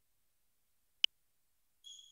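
A short click sounds as the console starts a game.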